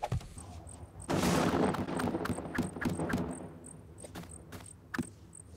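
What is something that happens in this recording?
A block thuds into place.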